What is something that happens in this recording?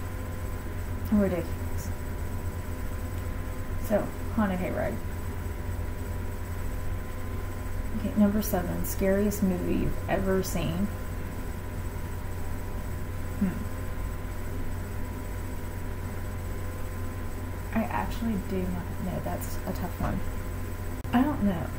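A young woman speaks calmly and quietly, close by, with pauses.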